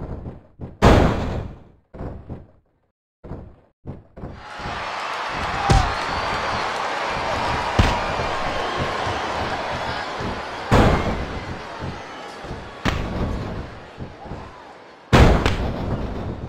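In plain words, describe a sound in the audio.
Heavy thuds of bodies slamming down boom out now and then.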